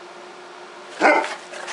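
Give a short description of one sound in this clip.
A dog barks once nearby.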